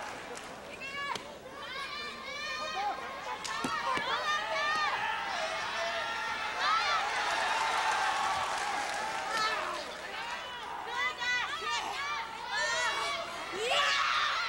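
Spectators in a crowd shout out in high-pitched voices.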